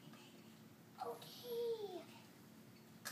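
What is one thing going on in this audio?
A young girl sings out briefly, close by.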